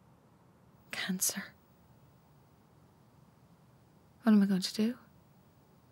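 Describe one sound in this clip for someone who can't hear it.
A woman speaks briefly and quietly nearby.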